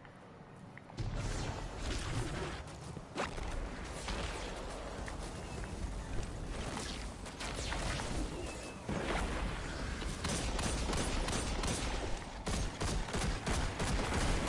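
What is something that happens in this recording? Energy guns fire in rapid bursts with sharp zapping shots.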